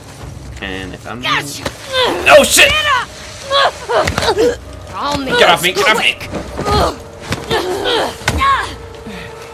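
Game characters grunt and shout while struggling.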